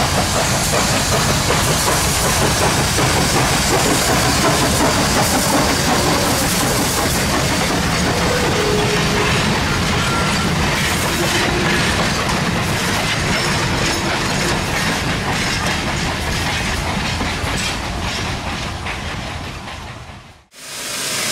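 A steam switcher locomotive chugs hard as it pulls away.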